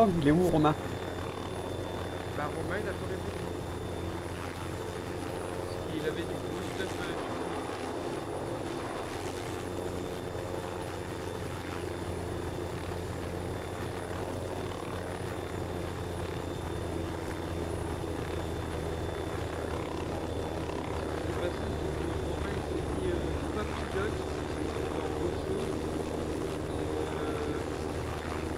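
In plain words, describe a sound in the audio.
A helicopter's rotor thumps and whirs steadily overhead.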